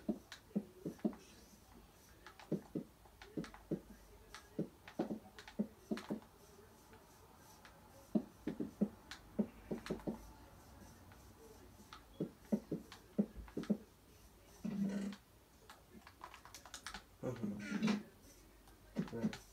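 Game footsteps thud quickly on blocks through a television speaker.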